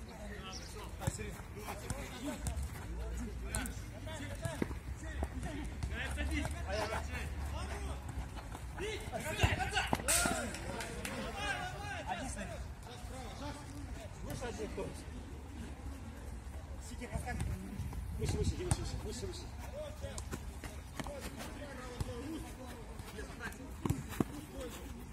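A football thuds off players' feet again and again.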